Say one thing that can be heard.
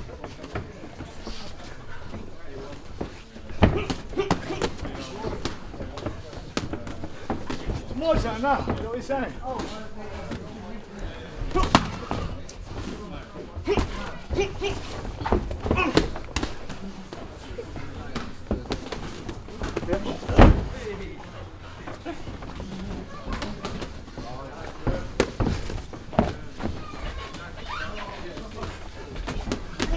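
Padded gloves thud against pads in quick bursts.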